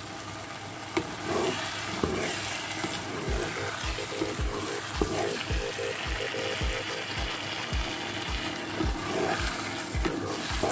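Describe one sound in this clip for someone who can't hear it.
A wooden spoon stirs and scrapes against a pan.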